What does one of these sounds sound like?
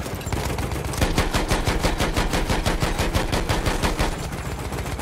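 A heavy machine gun fires rapid bursts.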